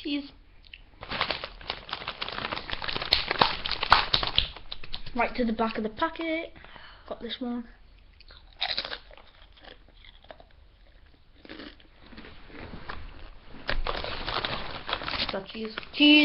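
A bag rustles loudly close to a microphone.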